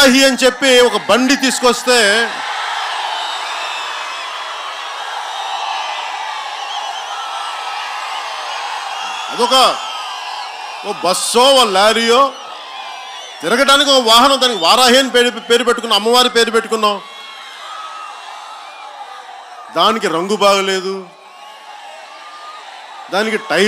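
A man speaks forcefully into a microphone over loudspeakers, outdoors with echo.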